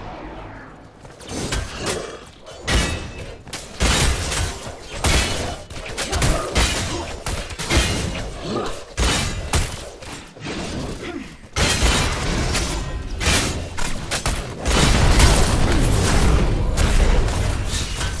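Game weapons fire and blasts crackle in a fierce fight.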